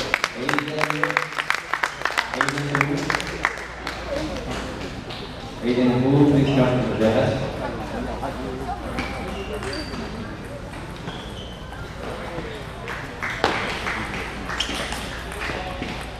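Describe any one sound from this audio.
A table tennis ball clicks back and forth off paddles and the table in an echoing hall.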